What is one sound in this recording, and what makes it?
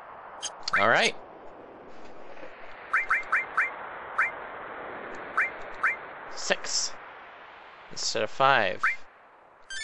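Short electronic menu beeps click repeatedly.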